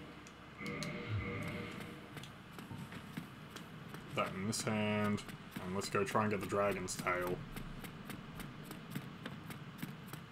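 Footsteps patter on stone.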